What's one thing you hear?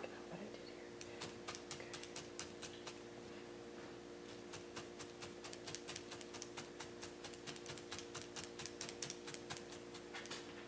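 A felting needle punches rapidly and steadily into coarse fabric with soft ticking pokes.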